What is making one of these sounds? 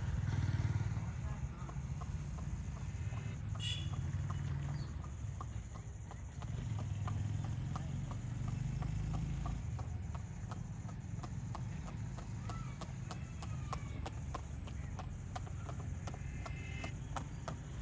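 A horse's hooves clop in a quick, steady gallop on a paved road, growing nearer.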